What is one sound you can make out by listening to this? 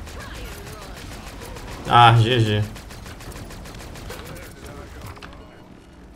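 A gun fires rapidly in bursts.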